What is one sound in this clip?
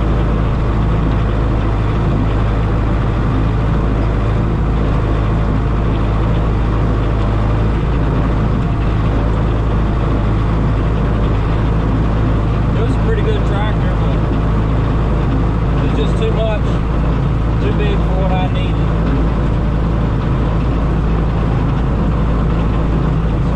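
A diesel tractor engine runs under load, heard from inside the cab.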